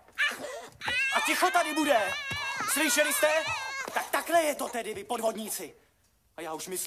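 Young women shout and shriek excitedly, close by.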